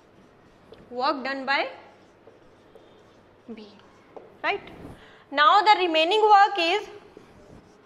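A young woman speaks calmly into a nearby microphone, in short phrases.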